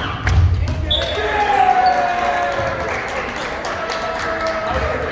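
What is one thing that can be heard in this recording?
Young players shout and call out across an echoing gym.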